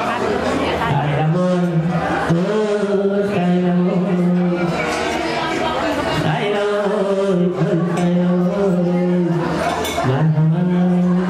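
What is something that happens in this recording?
An elderly man sings through a microphone with long, held notes.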